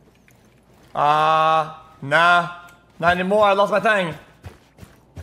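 A young man shouts and laughs loudly.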